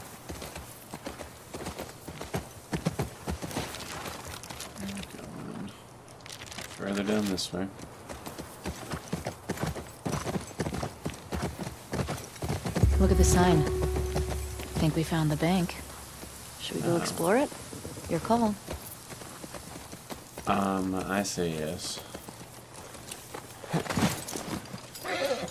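A horse gallops, its hooves thudding steadily.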